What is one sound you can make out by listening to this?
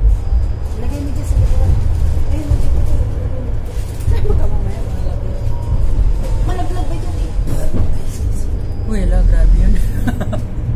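A woman talks close by, casually.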